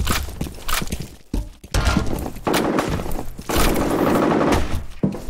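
Keyboard keys clack quickly.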